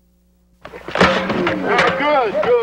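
Football players collide with a heavy thud.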